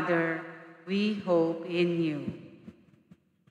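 A man speaks calmly into a microphone in an echoing hall.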